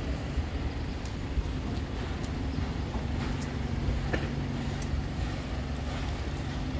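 A bus engine idles steadily with a low hum.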